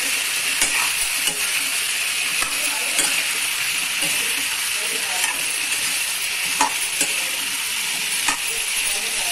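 A metal spatula scrapes and clicks against a metal pan.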